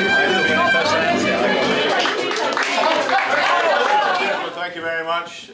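A crowd of people chatter loudly nearby.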